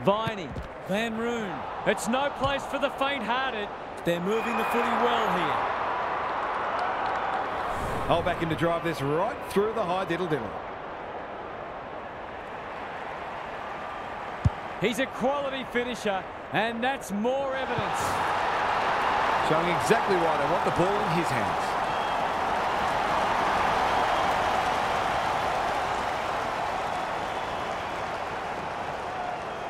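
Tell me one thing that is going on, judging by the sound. A large stadium crowd cheers and roars, swelling loudly partway through.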